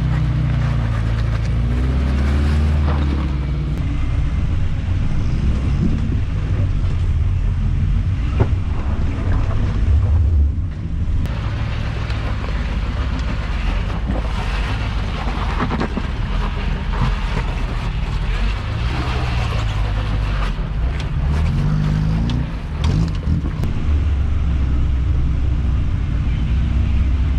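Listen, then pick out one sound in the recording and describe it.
An off-road engine idles and revs in low gear, rumbling throughout.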